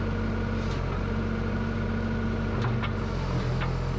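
An excavator bucket scrapes and thuds on soil.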